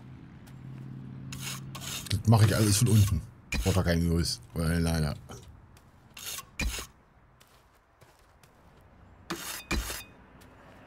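A trowel scrapes and taps on brick.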